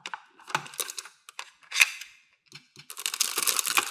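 Plastic toy pieces rattle and crinkle in a plastic bag.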